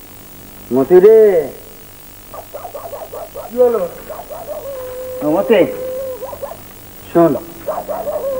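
A man speaks loudly and with animation nearby.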